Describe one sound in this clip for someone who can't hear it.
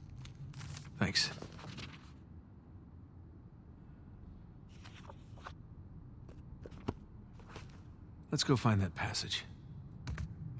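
A man speaks briefly and calmly, close by.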